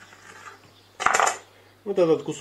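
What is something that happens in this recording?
A knife is set down on a cutting board with a clatter.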